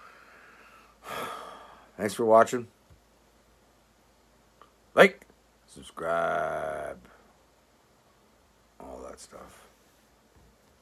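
An older man speaks close to the microphone in short bursts.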